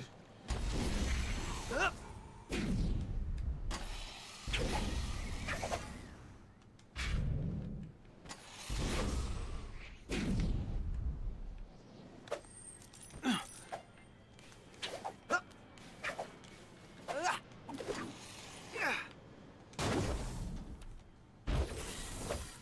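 A game character whooshes through the air.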